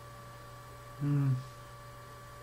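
A young man close by makes a short, low sound with his voice.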